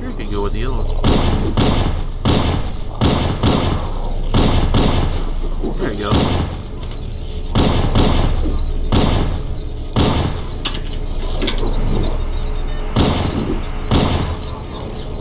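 Gunshots fire in quick, loud bursts.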